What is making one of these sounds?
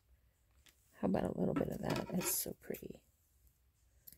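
A plastic bag rustles and crinkles up close.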